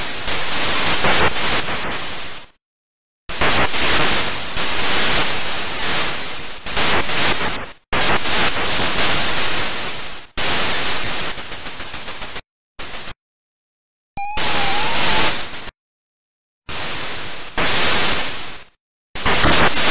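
Bursts of harsh electronic gunfire from a video game blast again and again.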